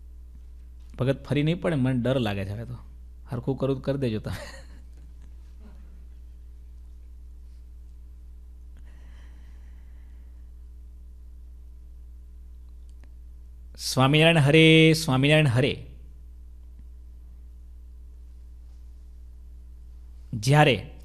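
A man speaks with animation into a microphone, close by, with long pauses.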